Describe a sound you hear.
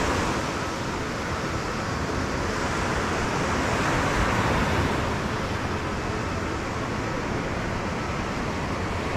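Waves wash steadily onto a beach nearby.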